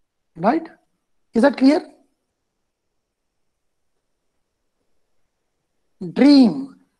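An elderly man speaks calmly over an online call, with long pauses.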